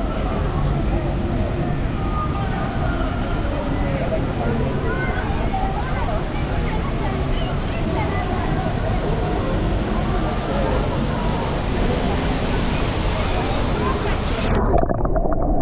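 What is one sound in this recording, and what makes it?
A fountain splashes steadily nearby.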